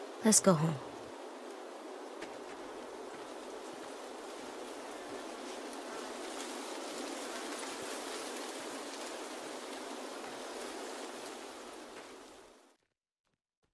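Water trickles in a small stream.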